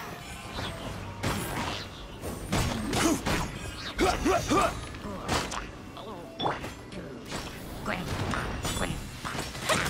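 Weapon blows land with sharp, fiery impacts.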